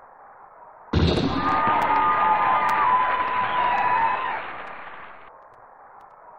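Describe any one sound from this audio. A synthesized crowd in a 16-bit video game cheers.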